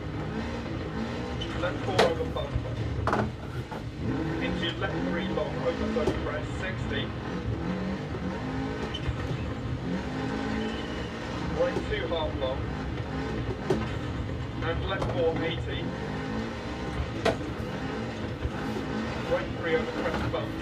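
Tyres crunch and skid over snow and gravel through loudspeakers.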